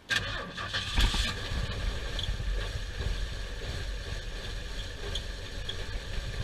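An engine idles roughly and unevenly, misfiring with irregular low thumps.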